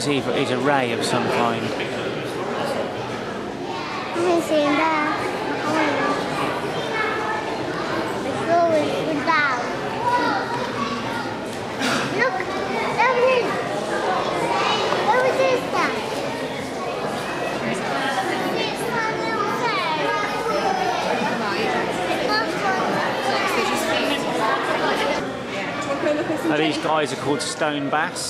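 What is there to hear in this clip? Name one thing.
A crowd of adults and children chatter all around in a large echoing hall.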